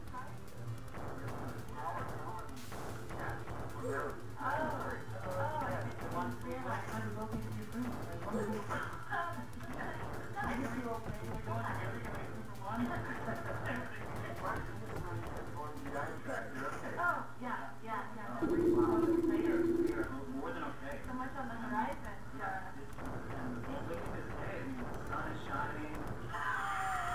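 Chiptune game music plays steadily throughout.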